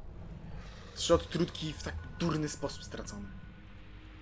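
A bright magical chime rings out as a healing item is used.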